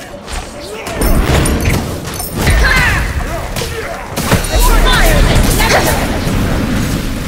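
Glowing spells whoosh and shimmer.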